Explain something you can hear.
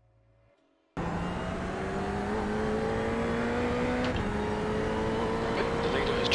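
A race car engine roars loudly at high revs.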